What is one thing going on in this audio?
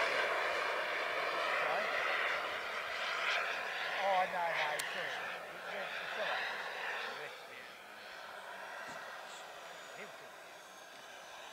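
A jet engine roars overhead, loud at first and then slowly fading into the distance.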